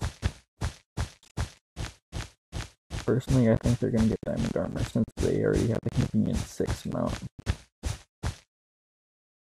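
Blocks are placed one after another with short, even taps.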